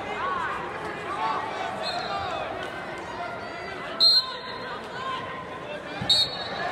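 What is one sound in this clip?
A crowd of spectators chatters and calls out in a large echoing arena.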